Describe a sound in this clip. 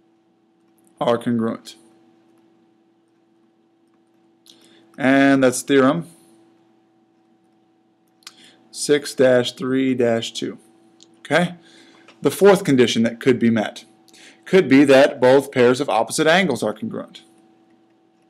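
A man speaks calmly and clearly into a nearby microphone, in short phrases with pauses.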